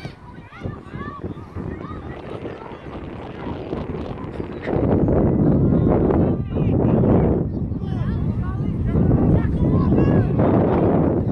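Children shout to each other in the distance outdoors.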